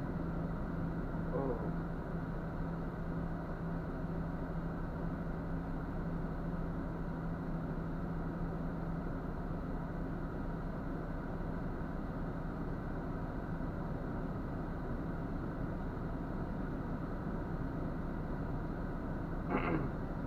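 A truck engine idles steadily close by, heard from inside the cab.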